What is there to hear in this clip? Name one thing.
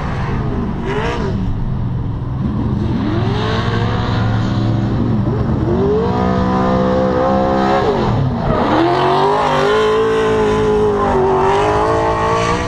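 Car engines rev hard, rising and falling in pitch outdoors.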